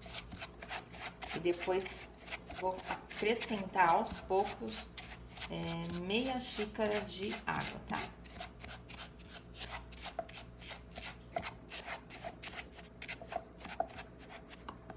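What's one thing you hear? A spatula scrapes and stirs sugar in a metal pot with a rapid gritty rasp.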